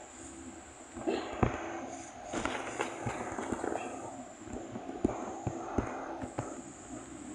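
A pickaxe knocks repeatedly against wood.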